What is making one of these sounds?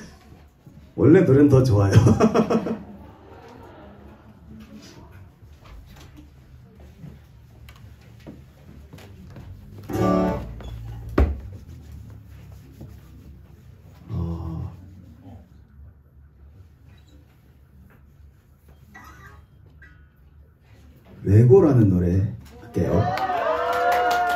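A man strums an acoustic guitar softly.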